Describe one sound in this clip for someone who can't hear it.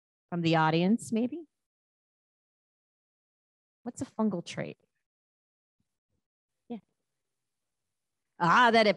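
A woman speaks into a microphone in short bursts, with long pauses between them.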